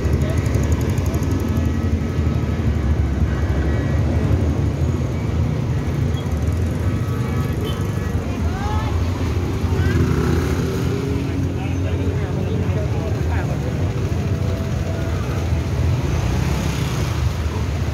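Motorbike engines idle and rumble nearby.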